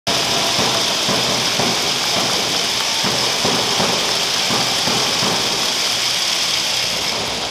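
Dancers' shoes tap and stamp on a hard floor.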